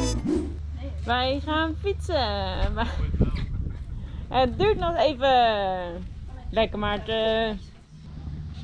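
A young woman talks with animation outdoors.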